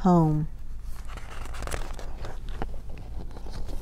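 A book's page is turned with a soft paper rustle.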